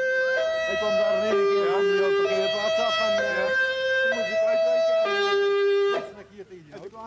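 An ambulance siren wails loudly close by in two alternating tones, then stops.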